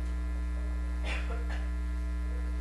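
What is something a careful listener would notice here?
A woman coughs nearby.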